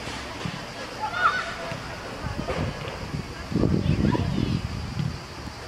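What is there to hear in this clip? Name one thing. Young women shout to each other outdoors on an open field.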